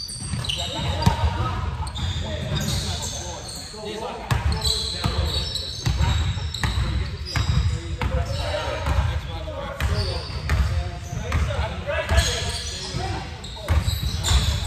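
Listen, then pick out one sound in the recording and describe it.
Young men shout and call out to each other across the gym.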